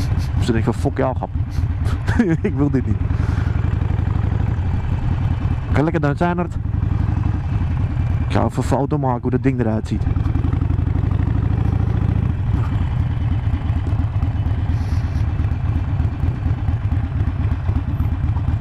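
A motorcycle engine rumbles steadily up close.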